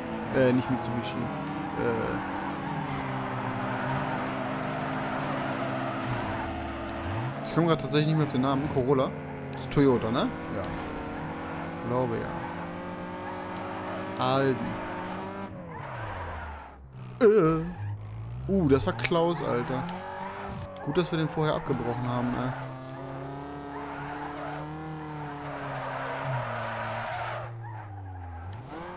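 A car engine revs and whines steadily, rising and falling in pitch.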